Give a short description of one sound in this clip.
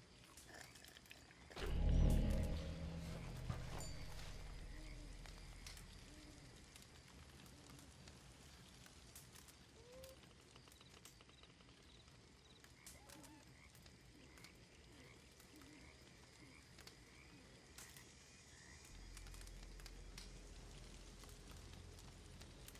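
A campfire crackles and pops close by.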